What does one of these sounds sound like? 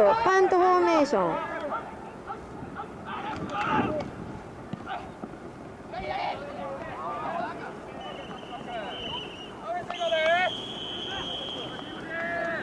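Young men shout and call out nearby outdoors.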